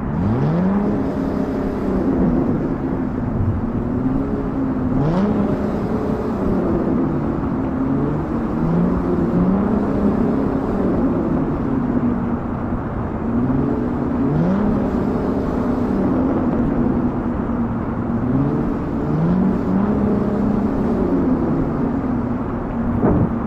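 A truck engine roars, rising and falling in pitch as gears shift.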